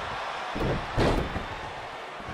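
A body slams heavily onto a wrestling ring mat.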